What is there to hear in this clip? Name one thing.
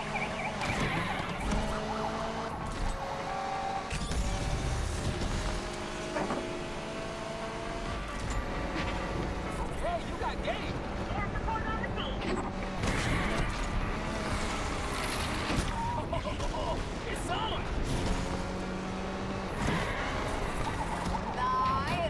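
Tyres screech while a car drifts through bends.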